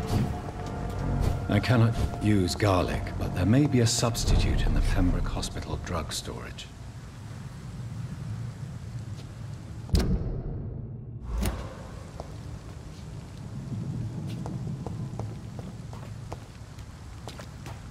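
Footsteps tap on wet cobblestones.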